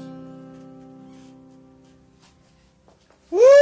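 A guitar chord rings out and slowly fades.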